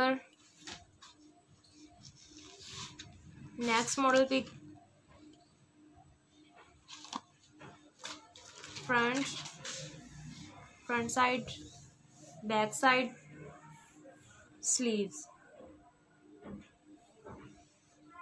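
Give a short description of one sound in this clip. Cloth rustles softly as it is unfolded and handled.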